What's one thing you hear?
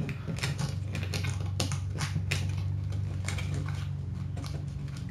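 Plastic game pieces click and clatter on a table.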